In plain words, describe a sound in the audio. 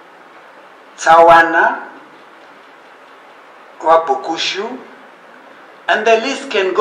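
An elderly man speaks slowly into a microphone over a loudspeaker, with pauses between phrases.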